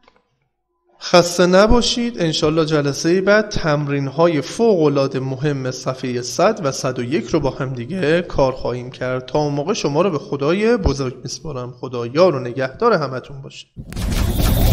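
A man speaks calmly and steadily, close to a microphone.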